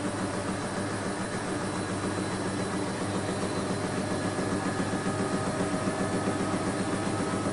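A washing machine drum turns with a steady hum.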